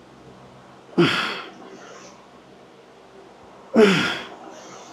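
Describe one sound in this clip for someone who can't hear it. A man grunts loudly with effort.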